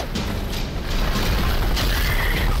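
A fiery blast bursts with a roar.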